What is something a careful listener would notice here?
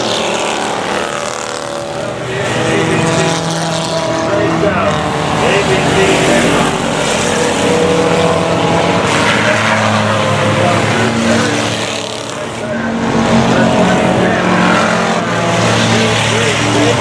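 Several race car engines roar loudly as cars speed around a track.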